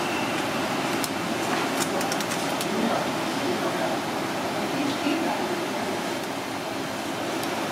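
Metal tongs clink and scrape against a metal pan.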